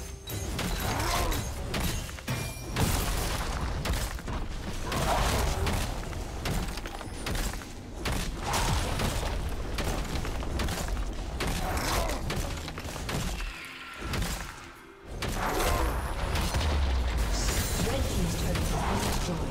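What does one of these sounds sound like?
Game spell effects crackle and blast during a fight.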